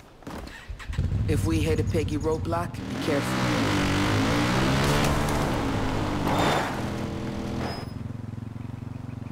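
A quad bike engine starts up and revs, rising and falling in pitch as it drives over rough ground.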